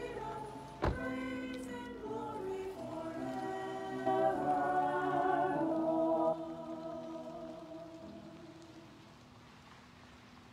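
A woman sings through a microphone.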